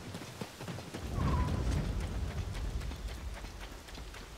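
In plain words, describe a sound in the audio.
A low magical rumble swells up.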